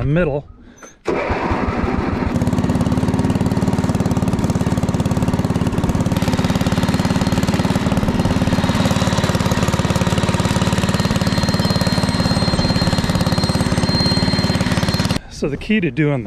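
A riding mower's engine runs with a loud, steady drone.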